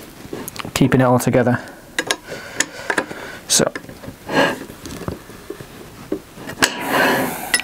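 Rubber scrapes and squeaks as a man's hands work it.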